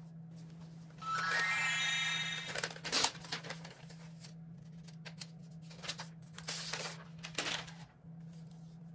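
Thin paper wrapping rustles and crinkles as it is peeled off.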